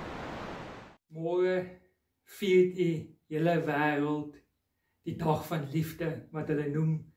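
A man speaks calmly and warmly, close to the microphone.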